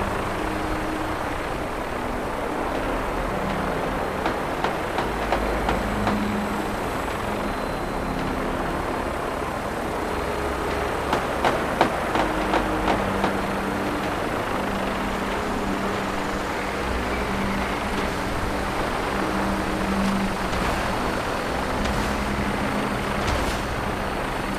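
Helicopter rotors thump and drone overhead.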